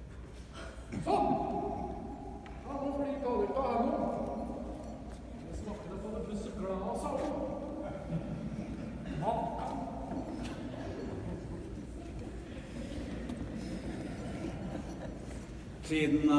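A man speaks loudly and dramatically, some distance away, outdoors.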